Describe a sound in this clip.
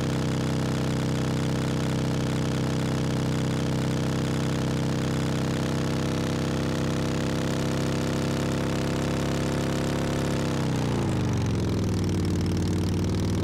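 A truck engine roars steadily, then drops in pitch as the truck slows.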